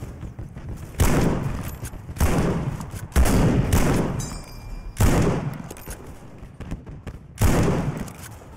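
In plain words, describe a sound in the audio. Rifle shots fire loudly, one every second or two.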